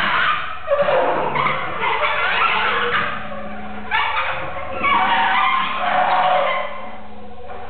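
A saxophone plays harsh, breathy bursts.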